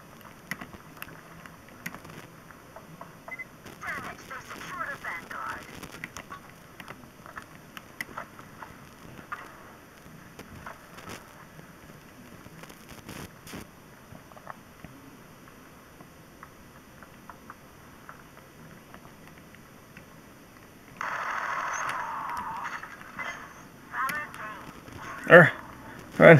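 Gunfire from a handheld game crackles through a small speaker.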